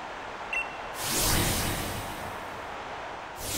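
A loud whoosh sweeps past.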